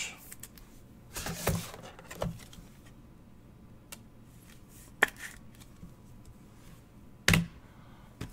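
Cards slide and tap against each other in hands.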